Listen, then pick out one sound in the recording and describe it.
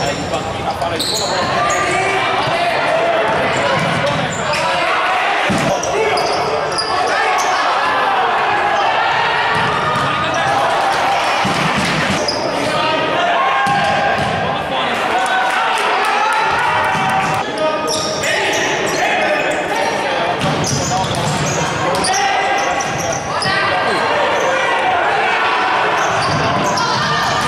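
A crowd of spectators chants and cheers loudly in a large echoing hall.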